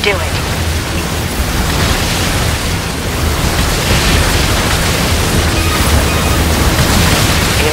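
Rapid gunfire and explosions rattle and boom continuously.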